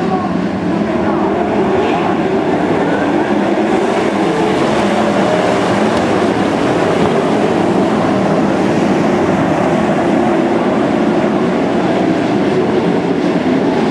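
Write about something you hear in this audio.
Racing car engines roar loudly and steadily around a dirt track.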